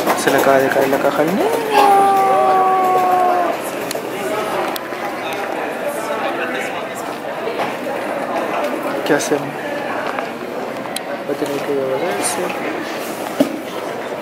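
A crowd murmurs faintly in a large echoing hall.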